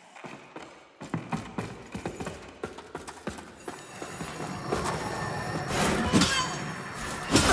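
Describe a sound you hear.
Footsteps crunch on a dirt floor.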